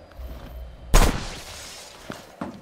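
A loud explosion bursts with electric crackling.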